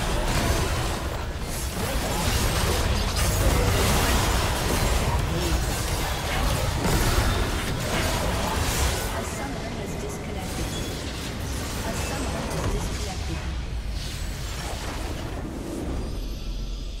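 Spell blasts and explosions crackle and boom in a fast fight.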